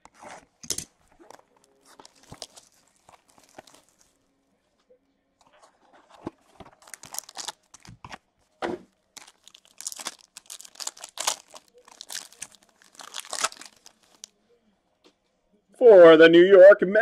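A cardboard box rubs and taps as hands handle it.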